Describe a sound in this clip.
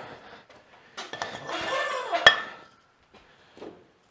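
A metal weight plate clinks onto a barbell.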